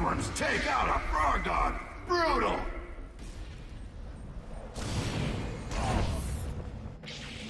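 Energy blasts zap and explode.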